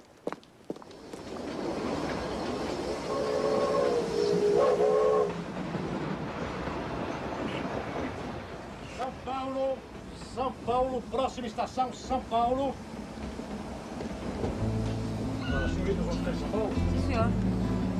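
A train rumbles along steadily.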